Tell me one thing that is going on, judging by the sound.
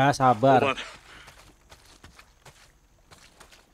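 Footsteps crunch on dirt ground.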